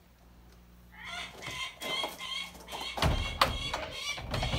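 A large bird of prey calls loudly with repeated cries.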